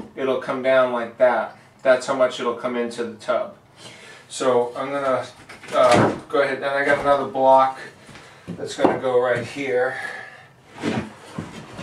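A man talks calmly up close.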